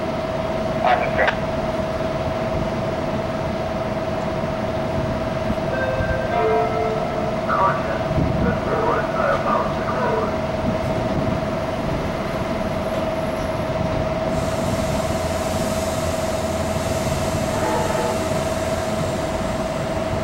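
A train idles with a steady, droning hum.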